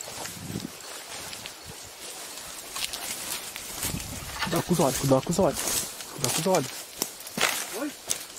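Bamboo stalks and leaves swish and crackle as they are pushed aside.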